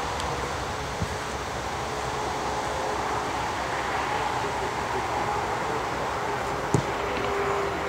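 A ball is kicked with a sharp thump.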